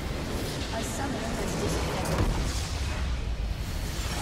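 A large crystal shatters with a heavy crash.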